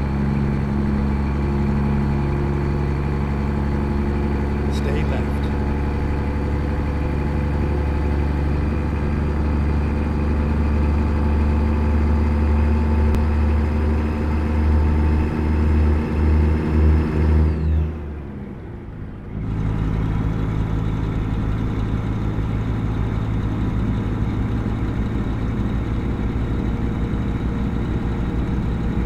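A heavy truck engine drones steadily, briefly dropping away and returning.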